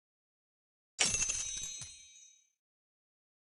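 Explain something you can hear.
A bright game jingle chimes as a reward pops up.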